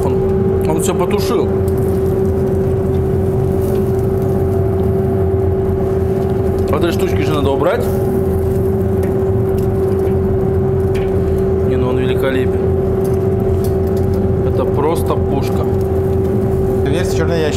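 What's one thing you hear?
Metal tongs clink against a grill grate.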